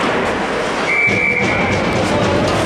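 A referee's whistle blows one short, sharp blast.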